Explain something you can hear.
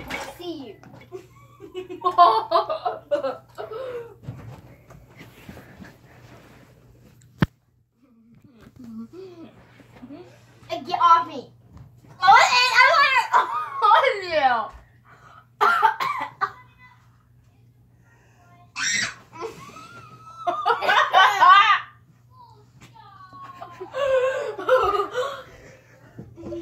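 Young girls talk and shout excitedly close by.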